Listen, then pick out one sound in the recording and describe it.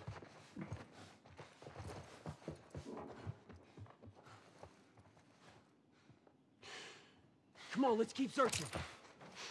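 Footsteps shuffle softly over a gritty floor.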